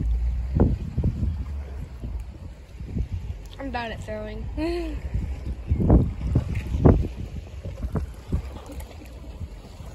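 Calm sea water laps gently against rocks.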